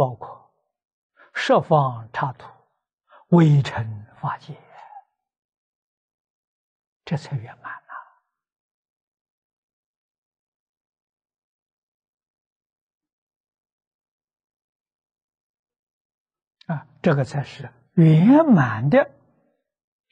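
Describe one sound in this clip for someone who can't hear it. An elderly man speaks calmly through a close microphone, with long pauses.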